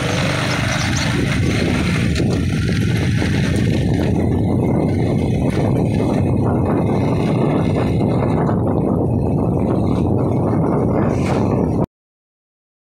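Wind rushes and buffets loudly outdoors.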